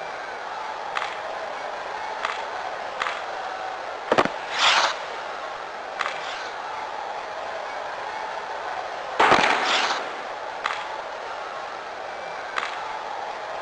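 A hockey stick strikes a puck with sharp clacks.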